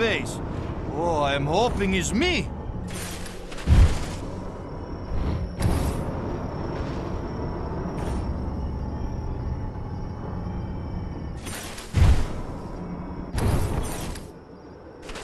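A jetpack roars and hisses in bursts.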